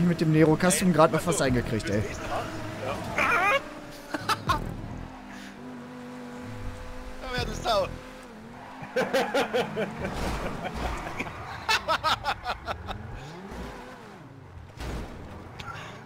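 A car engine hums and revs as a race car drives.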